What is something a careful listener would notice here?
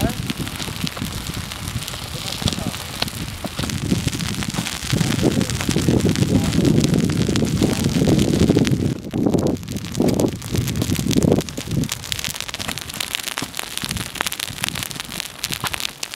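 Dry grass crackles and pops as it burns.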